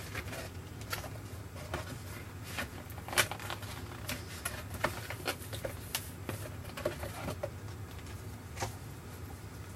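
Paper pages rustle and flap as they are handled close by.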